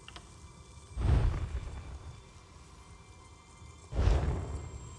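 Magical crafting sounds whoosh and chime.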